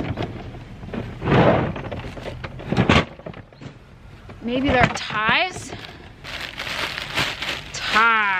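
Shoes knock and scuff against each other in a plastic crate.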